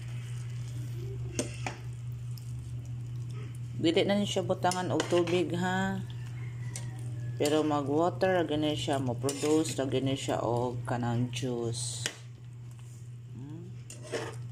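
A fork stirs and clinks against a pan of food.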